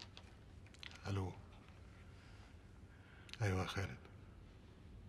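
A man speaks briefly into a phone.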